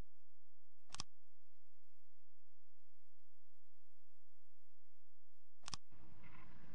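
A game menu gives a short click as a button is pressed.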